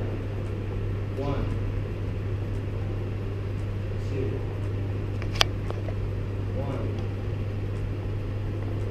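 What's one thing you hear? Fluorescent lights hum steadily.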